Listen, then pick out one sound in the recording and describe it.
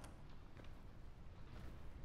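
A door handle rattles as it turns.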